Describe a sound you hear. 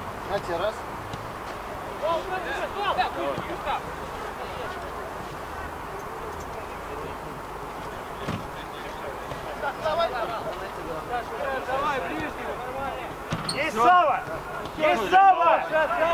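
Young men shout and call to each other across an outdoor pitch.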